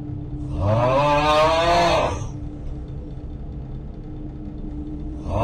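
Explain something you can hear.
A desk fan hums steadily.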